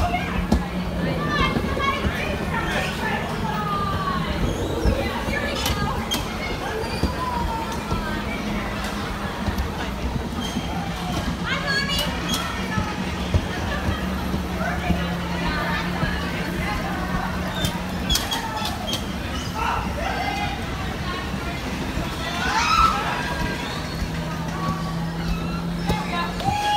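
Children and adults shout and laugh nearby.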